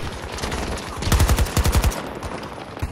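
Rapid gunfire cracks close by.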